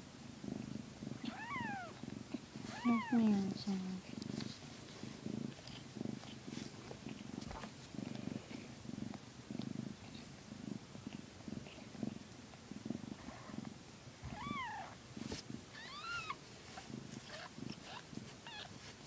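A cat licks and nuzzles with soft wet rustling sounds.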